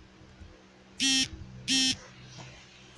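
A phone notification chime beeps twice.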